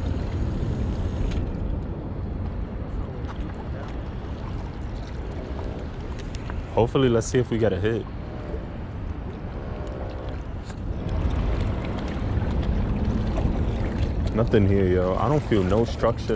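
A fishing reel clicks and whirs as it is wound.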